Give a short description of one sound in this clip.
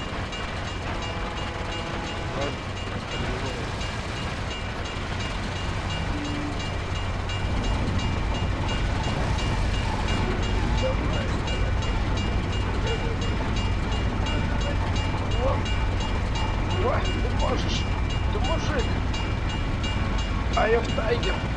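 An old car engine rumbles steadily.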